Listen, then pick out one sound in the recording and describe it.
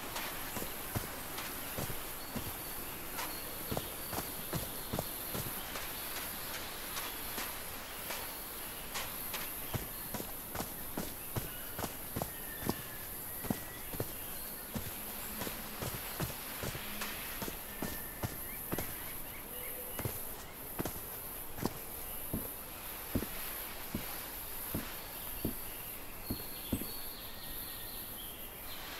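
Footsteps tread steadily on grass and soft ground.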